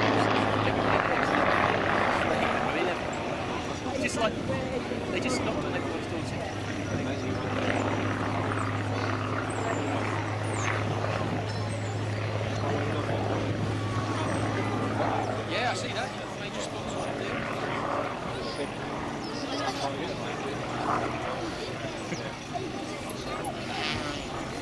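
A propeller plane's engine drones overhead with a steady low hum.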